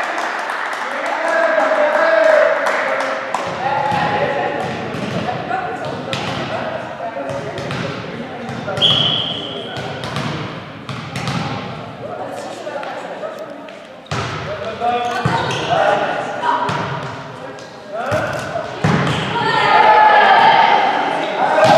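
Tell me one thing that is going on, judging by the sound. Young women shout and call to each other in a large echoing hall.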